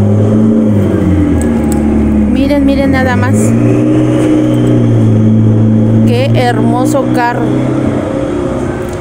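A sports car engine rumbles loudly as the car drives slowly past.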